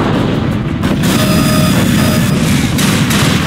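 A rapid energy gun fires a crackling stream of shots.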